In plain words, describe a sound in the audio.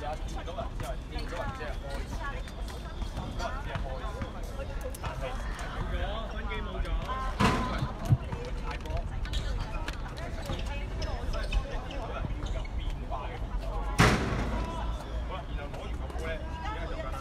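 Young girls chatter and call out nearby, outdoors.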